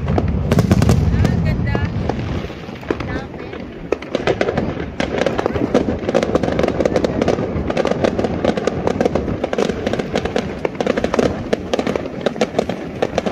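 Fireworks boom and thud in the sky.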